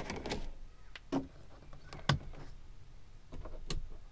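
Knocks and clicks sound as a man fits something to a vehicle's ceiling.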